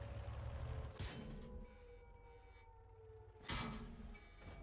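A tank cannon fires with a heavy boom.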